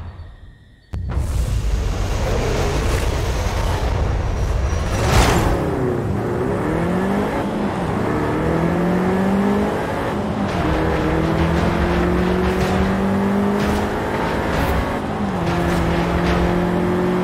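A car engine revs hard and roars as it accelerates up through the gears.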